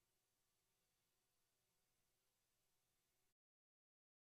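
A synthesizer plays a faint, steady electronic drone.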